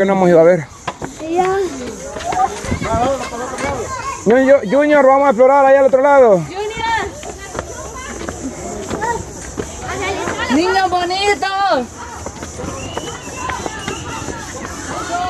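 Children squeal and shout excitedly nearby.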